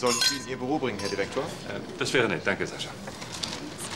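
Glasses clink together in a toast.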